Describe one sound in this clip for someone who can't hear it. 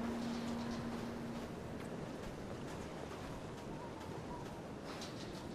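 Footsteps run quickly over soft wet ground.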